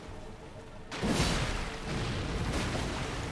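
A magic blast bursts with a loud whoosh.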